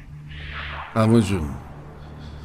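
A man speaks loudly and briefly.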